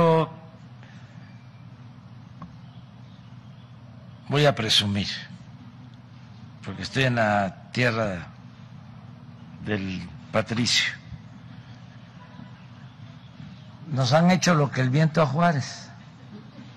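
An elderly man speaks slowly into a microphone, in short bursts with pauses.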